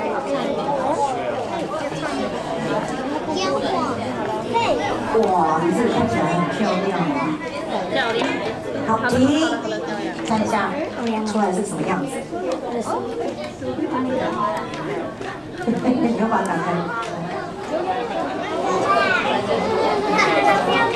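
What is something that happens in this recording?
Children chatter and talk excitedly nearby.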